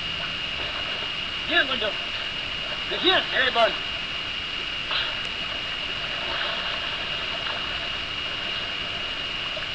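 Water splashes softly as a swimmer moves through a river.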